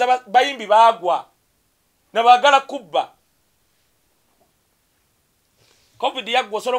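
A man speaks loudly and with animation, close by, in short bursts.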